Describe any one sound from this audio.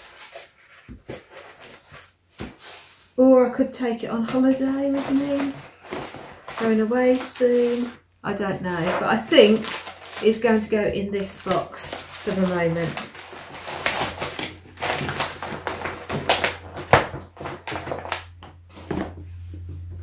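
Paper and plastic wrapping rustle and crinkle as hands handle them.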